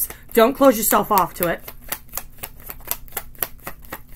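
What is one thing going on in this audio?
Playing cards are shuffled in the hands.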